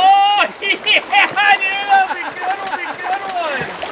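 Water splashes loudly as something hits the surface.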